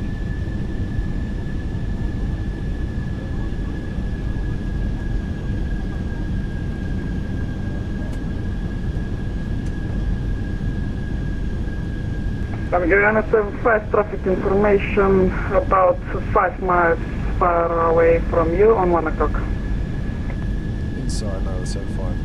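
Jet engines rumble low and steady throughout.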